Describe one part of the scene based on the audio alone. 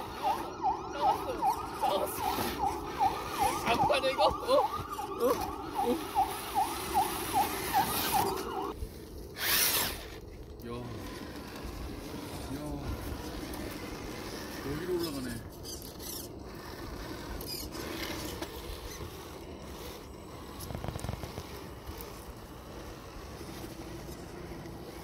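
A small electric motor whirs as a toy truck crawls over rocks.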